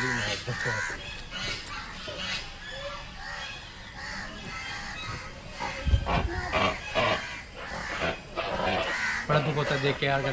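A man speaks with animation, heard through an online call.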